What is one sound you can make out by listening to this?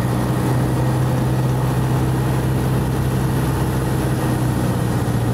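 Wind rushes past the plane.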